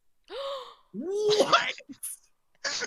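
A young woman exclaims loudly in surprise.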